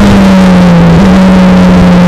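A Formula Renault 2.0 single-seater shifts gear.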